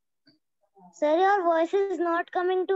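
A young girl speaks with animation close to the microphone.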